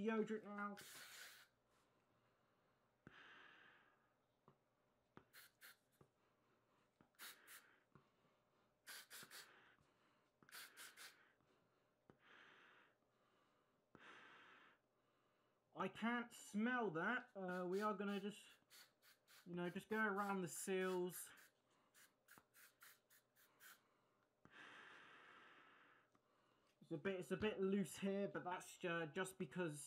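A young man talks, muffled through a gas mask, close by.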